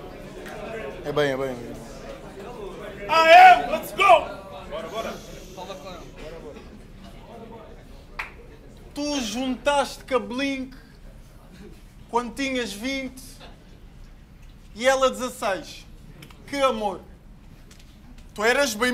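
A young man raps forcefully and close by.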